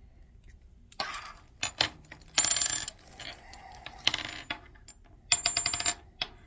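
Hands rustle and handle something close by in short bursts.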